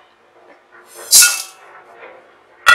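Seeds rattle as they are poured into a metal pot.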